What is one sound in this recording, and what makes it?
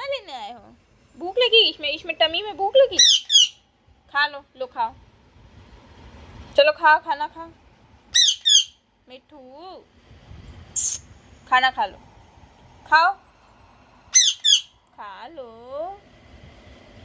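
A parrot chatters and squawks in bursts close by.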